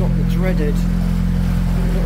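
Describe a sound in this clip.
Water churns and splashes beside a boat.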